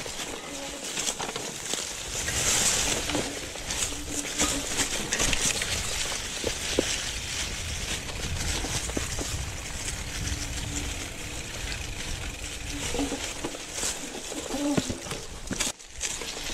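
Wind rushes past the microphone.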